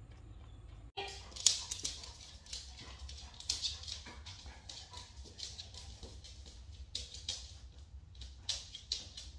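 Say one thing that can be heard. A dog's claws click on a wooden floor.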